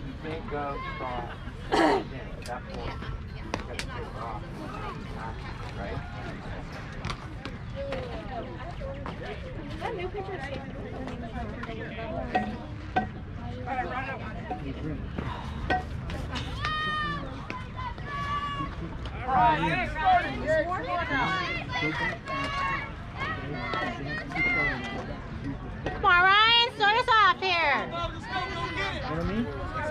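Young players and coaches shout and call out across an open field outdoors.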